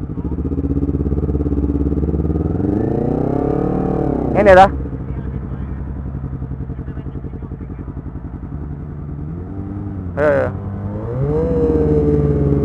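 A parallel-twin sport motorcycle idles close by.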